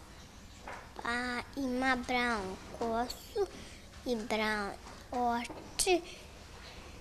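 A young girl speaks softly and haltingly, close by.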